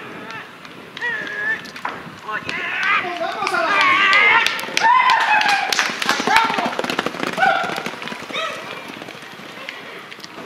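Horses' hooves thud rapidly on a dirt track.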